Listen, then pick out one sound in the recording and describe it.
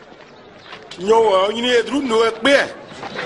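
A man speaks loudly and with emphasis, close by.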